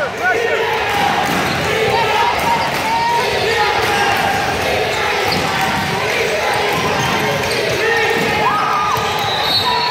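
Young boys shout and call out to each other across the gym.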